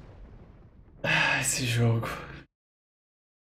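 A young man speaks loudly with animation close to a microphone.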